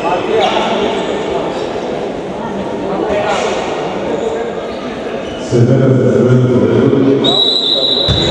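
A young man shouts loudly in a large echoing hall.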